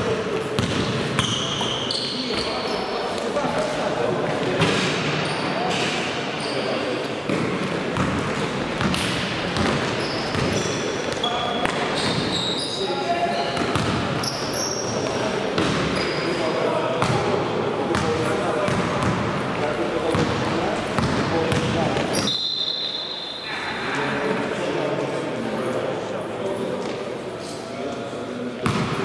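A basketball bounces and thuds on the floor.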